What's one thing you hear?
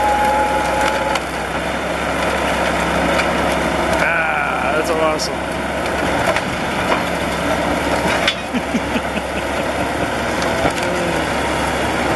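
Metal crunches and scrapes as a bulldozer crushes a car.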